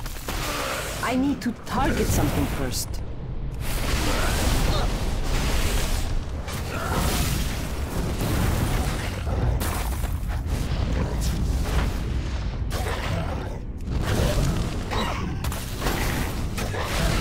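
Game combat effects clash and whoosh loudly.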